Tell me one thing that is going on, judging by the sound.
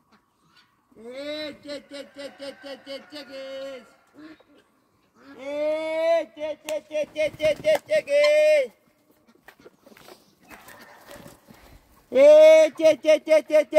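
A rooster crows loudly close by, several times.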